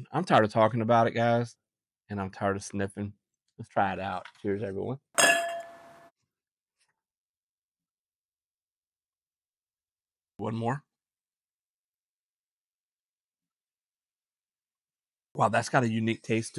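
A middle-aged man talks with animation, close to the microphone.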